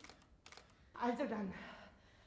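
A woman speaks clearly.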